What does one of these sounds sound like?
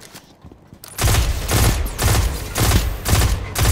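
A gun fires in rapid bursts.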